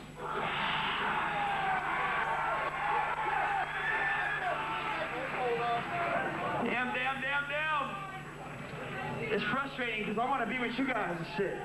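A crowd chatters and cheers in a noisy room.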